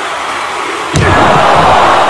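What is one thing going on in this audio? A body slams heavily onto a wrestling mat.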